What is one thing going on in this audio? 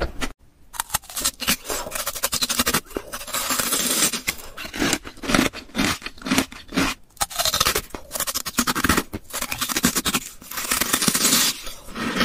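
Ice crunches and cracks between teeth, very close.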